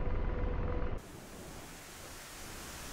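A missile rushes through the air with a soft hiss.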